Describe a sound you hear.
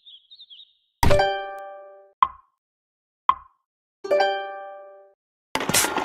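Bright chiming notes ring out in short bursts.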